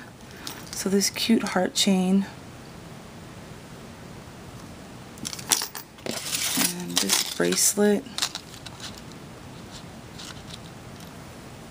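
A metal chain jingles lightly.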